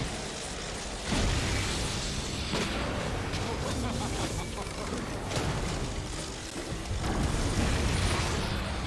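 Spell effects burst and crackle in a fast fight.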